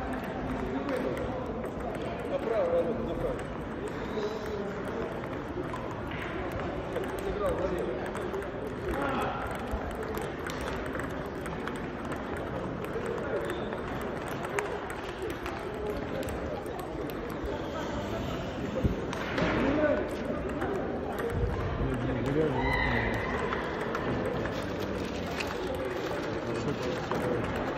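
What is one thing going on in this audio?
Table tennis balls click against paddles and the table.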